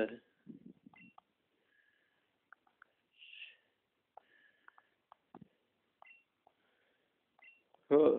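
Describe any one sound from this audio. A handheld video game gives short electronic beeps as text advances.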